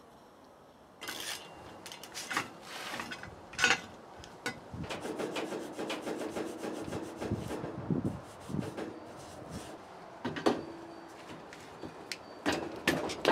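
Metal brake parts clank and knock on a workbench.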